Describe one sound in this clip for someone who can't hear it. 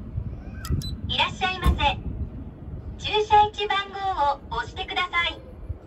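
A recorded voice announces clearly through a machine's small loudspeaker.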